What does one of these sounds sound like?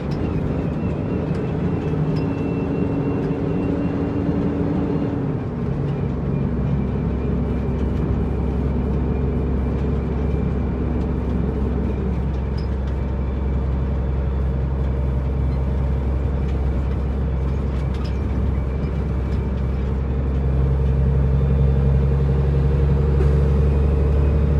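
Tyres roll on a paved road.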